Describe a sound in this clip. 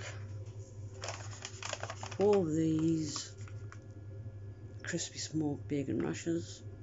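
A plastic food pack crinkles in a hand.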